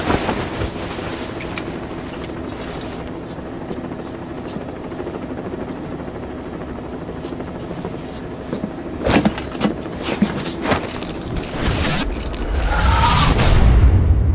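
A low engine hum drones steadily.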